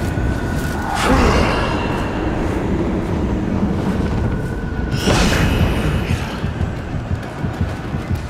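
A magic blade whooshes through the air in sudden bursts.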